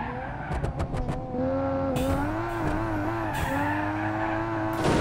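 Tyres squeal as a car slides through a corner.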